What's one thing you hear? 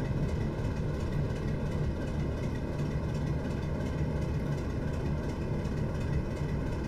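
Train wheels rumble and clatter over rail joints.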